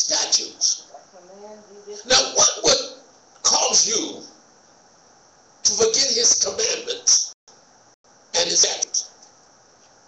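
A man speaks slowly into a microphone, with long pauses.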